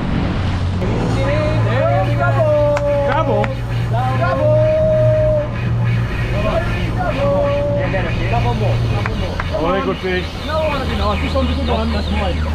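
A second man talks and calls out over the engine.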